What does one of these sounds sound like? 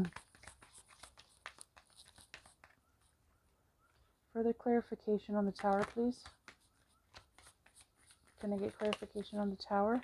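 Playing cards flick and slap softly as they are shuffled by hand.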